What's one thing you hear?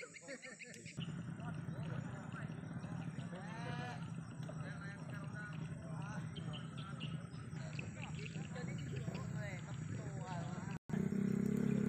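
Young men talk and call out outdoors nearby.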